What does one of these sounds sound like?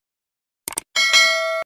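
A bell chimes brightly.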